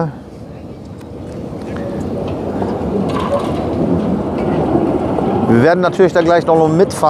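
A tram rumbles along the rails, growing louder as it comes closer.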